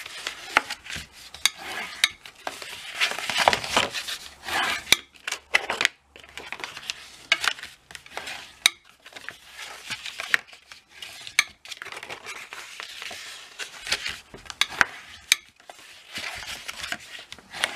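A bone folder scrapes along a paper crease.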